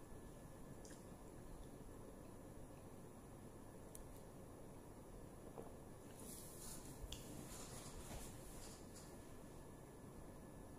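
A woman sips and swallows a drink in small gulps.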